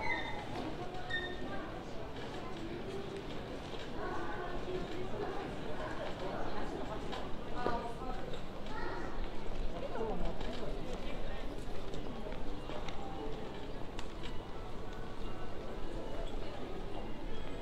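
A lively outdoor bustle fills the air.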